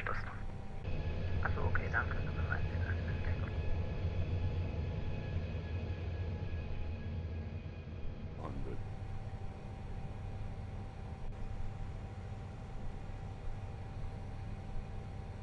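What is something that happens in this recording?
Jet engines roar steadily as an airliner flies.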